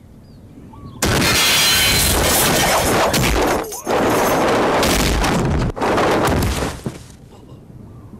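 Whooshing rushes of air sweep past as fighters leap.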